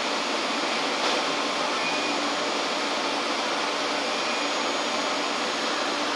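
An electric train hums and rumbles steadily close by.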